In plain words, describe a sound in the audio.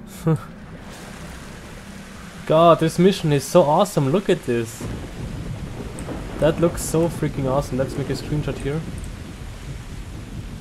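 Heavy rain patters on water outdoors.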